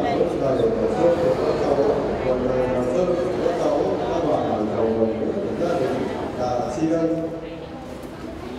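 A group of children and adults chant a prayer together nearby.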